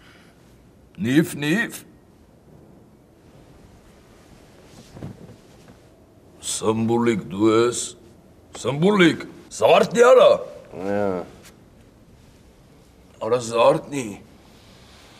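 A young man speaks in short, strained bursts close by.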